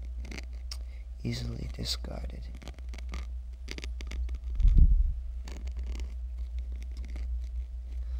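A wet, fleshy organ throbs and squelches in a slow pulse.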